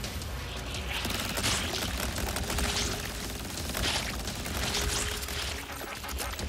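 Electric blasts crackle and zap in bursts.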